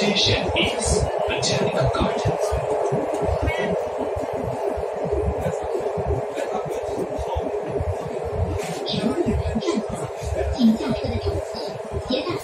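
A metro train rumbles steadily along its track.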